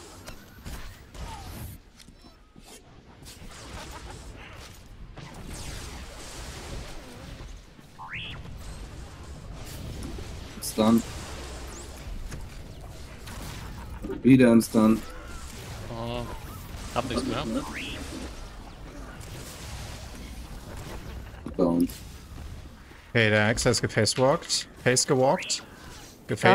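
Game spell effects crackle and whoosh in bursts.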